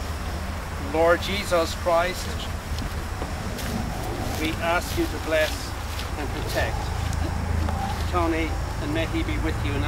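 Men talk quietly nearby.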